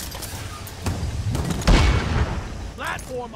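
A heavy rotary gun fires a rapid, rumbling burst.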